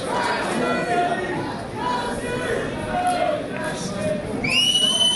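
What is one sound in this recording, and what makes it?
Young men shout and cheer together outdoors.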